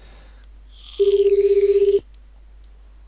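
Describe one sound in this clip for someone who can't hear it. A phone call rings with a steady electronic ringing tone.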